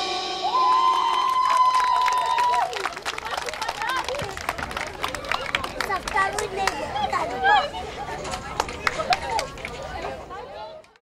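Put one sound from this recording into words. A crowd claps along.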